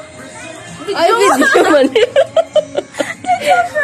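A young woman laughs close to the microphone.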